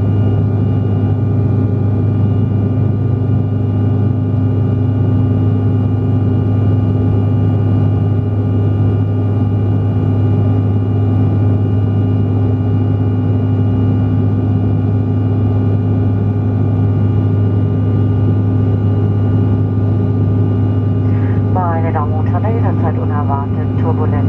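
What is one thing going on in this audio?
Jet engines roar steadily inside an aircraft cabin.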